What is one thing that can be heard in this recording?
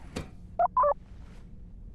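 A small robot chirps with two short electronic beeps.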